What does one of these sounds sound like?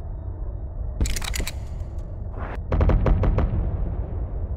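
Heavy guns fire in rapid bursts of booming shots.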